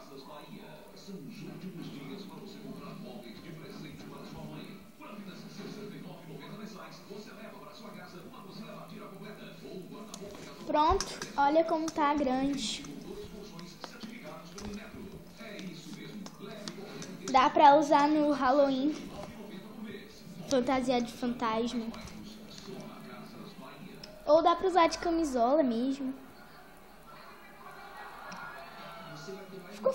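A television plays faintly in the background.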